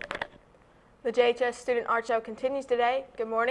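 A young woman speaks clearly into a microphone, presenting.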